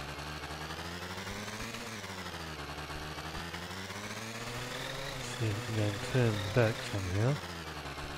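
A small motor scooter engine hums steadily, its pitch rising and falling with speed.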